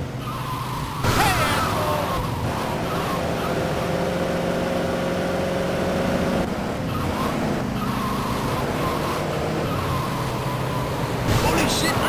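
Tyres screech as a truck skids around a corner.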